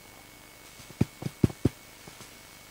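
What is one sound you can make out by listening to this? A microphone knocks and thumps as it is handled.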